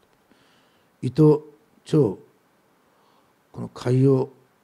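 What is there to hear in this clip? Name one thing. An older man speaks slowly and calmly into a headset microphone, in short phrases.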